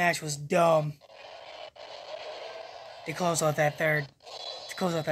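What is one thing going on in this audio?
A video game explosion booms.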